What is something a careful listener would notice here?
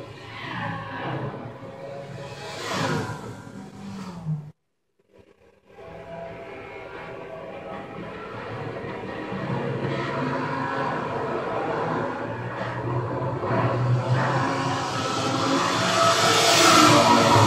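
A racing car engine roars loudly, its pitch rising and falling as it shifts gears.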